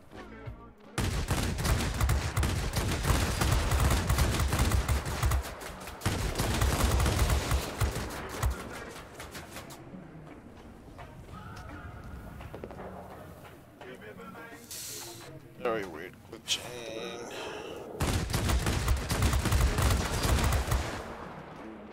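Aircraft guns fire in loud rapid bursts.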